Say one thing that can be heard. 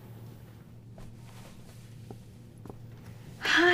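Footsteps tap softly on a floor.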